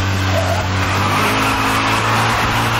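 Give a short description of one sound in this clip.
Tyres screech as a car drifts through a bend.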